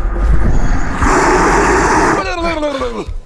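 A creature roars loudly.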